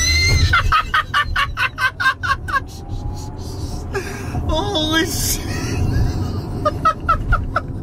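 A man laughs loudly and heartily close by.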